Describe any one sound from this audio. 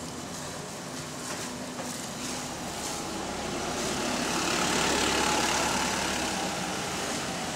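A bus engine rumbles nearby and grows louder as the bus pulls away.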